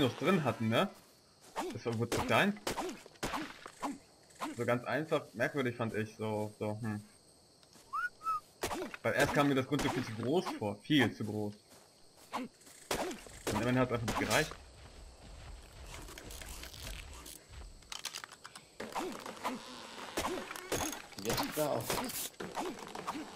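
A stone pick strikes wood with sharp, repeated thuds.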